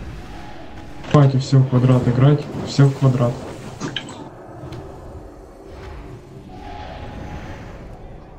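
Magic spells crackle and whoosh in a game battle.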